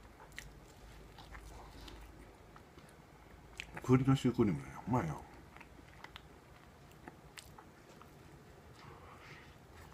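A man bites into food.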